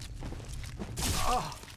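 A creature lets out a low, creaking groan.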